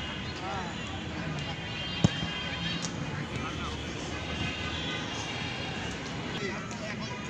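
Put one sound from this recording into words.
Young men and boys shout and call out in the distance outdoors.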